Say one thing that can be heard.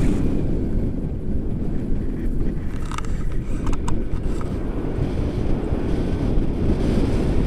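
Strong wind rumbles and buffets outdoors in the open air.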